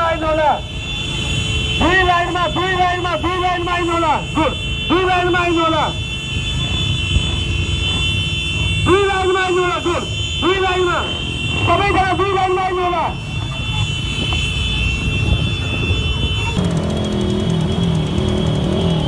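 Motorcycles ride past on a road.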